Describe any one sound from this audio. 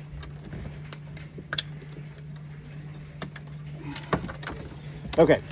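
Plastic connectors click and rattle in a man's hands.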